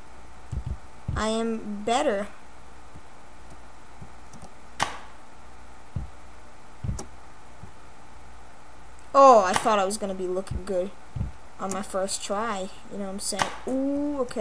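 A boy speaks with animation close to a microphone.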